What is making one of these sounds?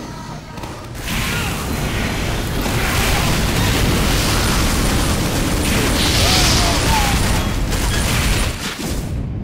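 A flamethrower roars loudly in long blasts.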